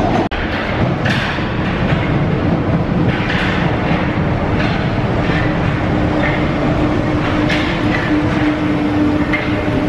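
Train brakes squeal as a metro train slows to a stop.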